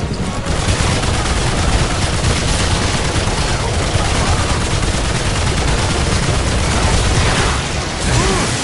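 A heavy gun fires in long rapid bursts.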